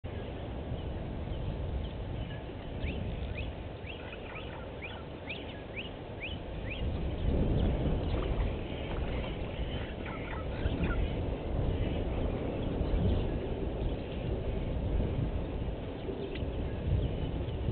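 Wind rumbles steadily outdoors, growing stronger partway through.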